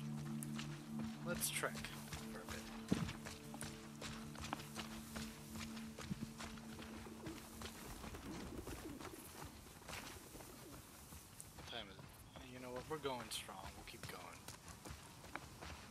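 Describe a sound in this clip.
Grass rustles and swishes against a moving body.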